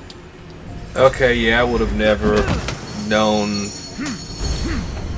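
A treasure chest creaks open.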